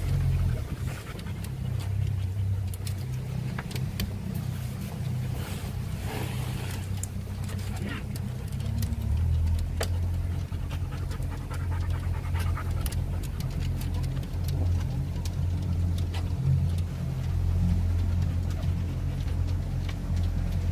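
A small boat motor hums steadily.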